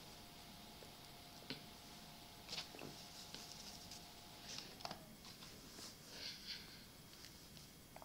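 A boy speaks quietly close to a microphone.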